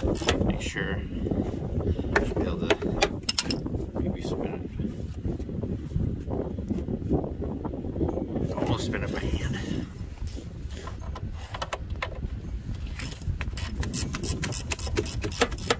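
A ratchet wrench clicks as a bolt is turned.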